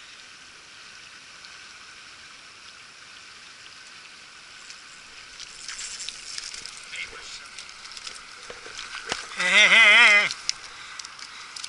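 A shallow stream ripples and trickles steadily.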